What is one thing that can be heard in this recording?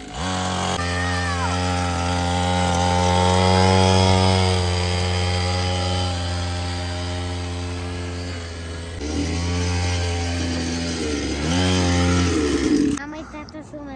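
A small electric motorbike whines steadily as it rides along.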